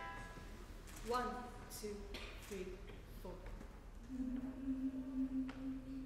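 A young woman sings a short phrase on stage.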